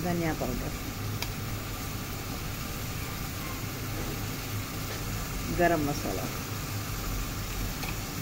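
A thick stew bubbles gently in a pot.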